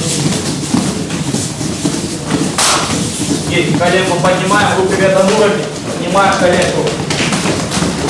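Bare feet thud and patter on mats.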